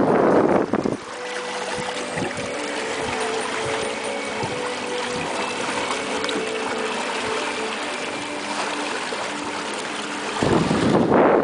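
An outboard motor hums steadily behind the boat.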